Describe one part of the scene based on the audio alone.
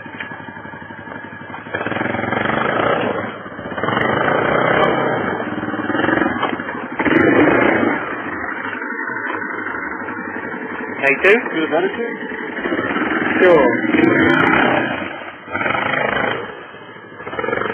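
Branches and leaves scrape and rustle against an ATV.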